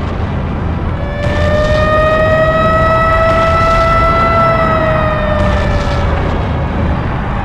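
A monster lets out a long, loud roar.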